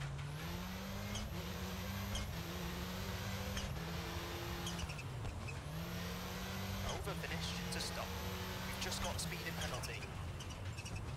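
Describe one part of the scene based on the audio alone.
A rally car engine roars and revs up through the gears, dropping in pitch at each shift.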